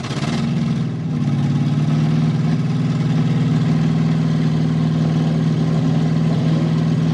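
A large engine rumbles steadily nearby.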